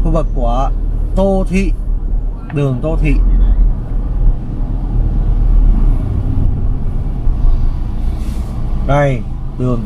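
A car engine hums with a low, steady rumble while driving.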